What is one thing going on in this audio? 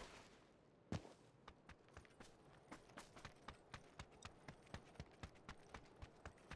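Footsteps patter quickly and evenly.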